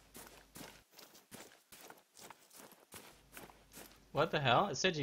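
Footsteps rustle through dry crop leaves.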